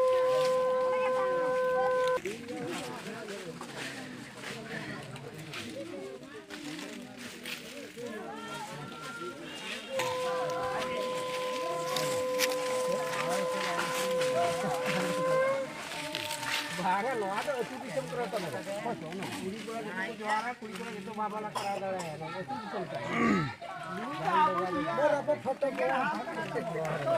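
Several men and women talk at once nearby outdoors.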